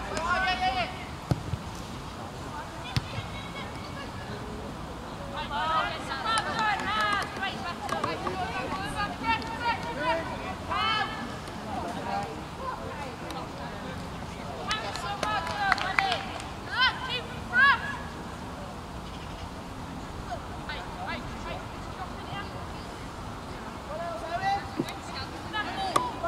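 Young men shout and call out across an open field, heard from a distance.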